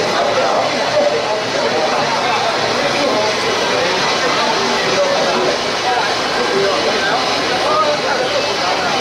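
A large crowd of men and women chatter and call out nearby.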